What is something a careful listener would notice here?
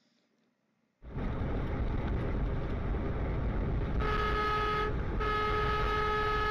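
A truck engine drones steadily with road noise from inside the cab.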